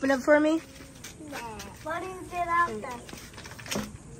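Young girls talk excitedly close by.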